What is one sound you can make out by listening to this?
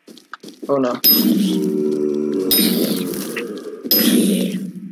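Zombies groan and grunt as they are hit.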